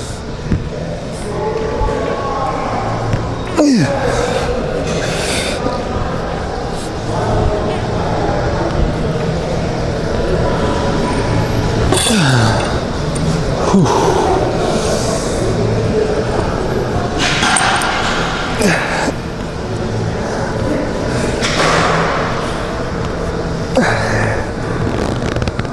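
A young woman exhales forcefully with each pull.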